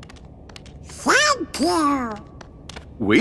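A man with a deep voice speaks warmly.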